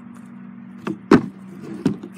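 A scooter deck clacks down hard on a wooden ramp.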